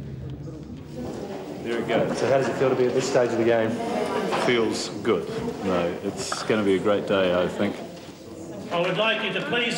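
A man speaks cheerfully close by.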